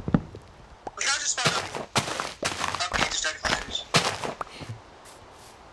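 Dirt crunches as it is dug away in quick blows.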